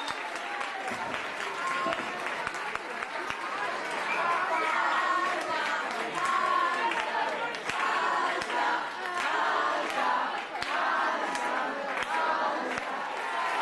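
A crowd applauds and claps steadily.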